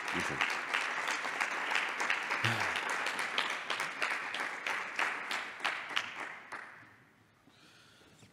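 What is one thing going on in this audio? An audience applauds in an echoing hall, then the applause fades away.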